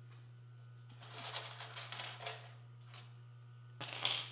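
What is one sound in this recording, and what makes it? Fabric rustles as it is handled close by.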